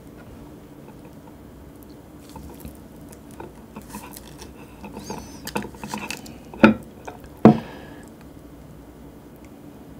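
Chopsticks dab food into a sauce.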